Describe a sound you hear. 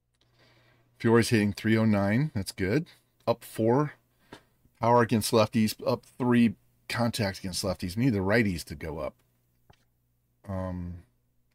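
An older man talks with animation into a close microphone.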